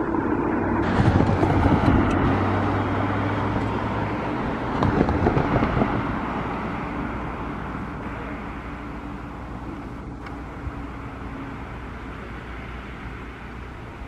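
A train rumbles closer along the tracks.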